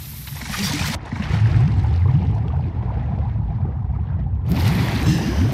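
Muffled underwater rumbling and bubbling.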